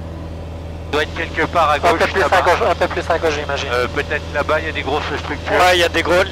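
A man talks with animation through a headset intercom.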